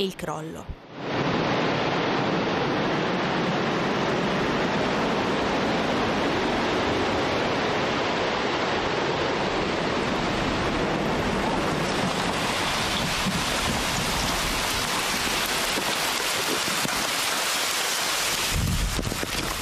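A loud, steady roar of rushing wind and debris sweeps past outdoors.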